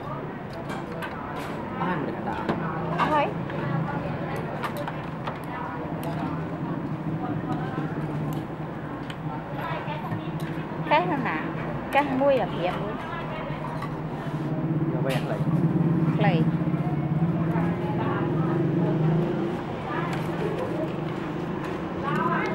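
Chopsticks and a fork clink against a plate.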